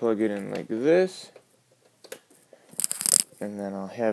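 A plastic drive bay cover clicks as a hand handles it.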